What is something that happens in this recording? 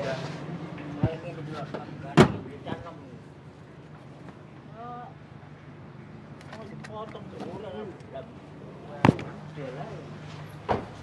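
Adult men talk casually nearby.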